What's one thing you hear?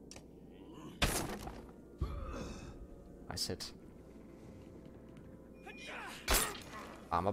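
Weapons strike in a battle with sharp thuds.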